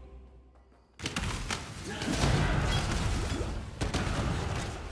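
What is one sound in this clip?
Magic blasts burst and crash loudly.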